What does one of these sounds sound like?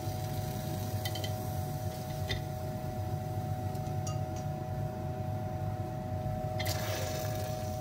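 Metal cutlery clinks against glass as tongs drop it into a jar.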